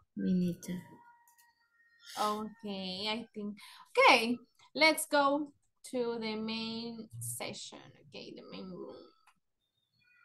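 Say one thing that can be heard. A young woman talks with animation over an online call.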